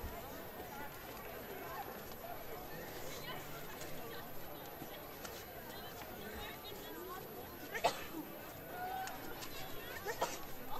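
A large crowd murmurs softly outdoors.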